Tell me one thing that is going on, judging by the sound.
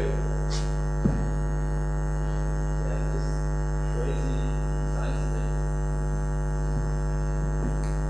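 A young man speaks calmly through a microphone.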